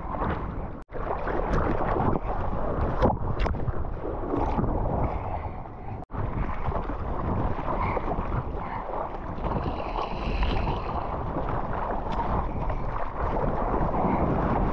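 Water rushes and sprays as a surfboard paddles through waves.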